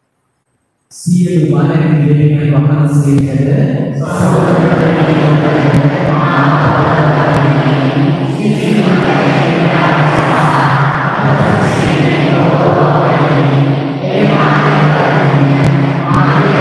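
A man sings steadily through a loudspeaker in a large echoing hall.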